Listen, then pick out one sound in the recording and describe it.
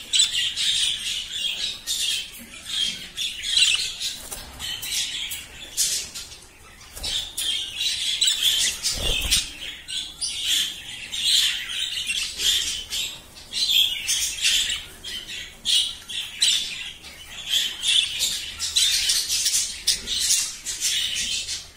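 Budgerigars warble and chirp.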